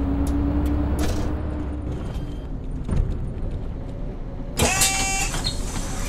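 A city bus engine drones while driving.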